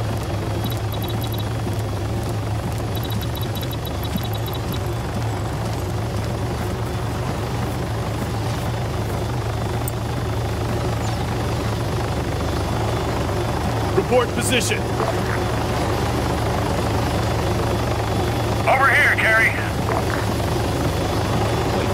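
A helicopter hovers nearby with a steady low droning rumble.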